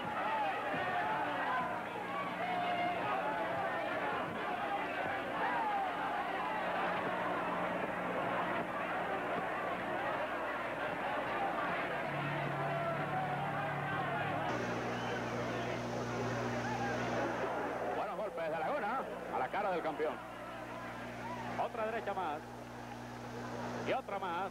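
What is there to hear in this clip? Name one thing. A large crowd cheers and murmurs in a big echoing hall.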